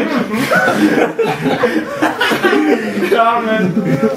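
Young men laugh close by.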